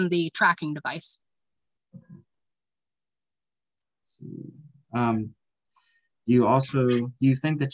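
A woman talks over an online call.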